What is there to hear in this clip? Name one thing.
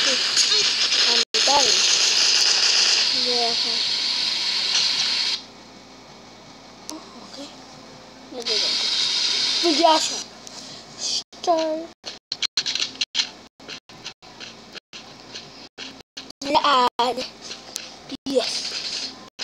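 A young boy talks close to a microphone with animation.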